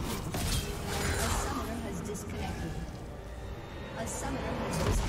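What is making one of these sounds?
Game spell effects crackle and boom in a fight.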